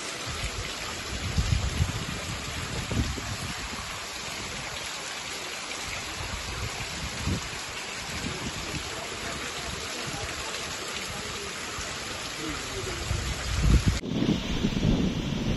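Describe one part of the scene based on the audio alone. Water flows and gurgles through a flooded street.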